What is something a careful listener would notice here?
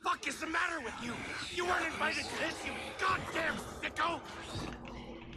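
A man speaks loudly and agitatedly close to a microphone.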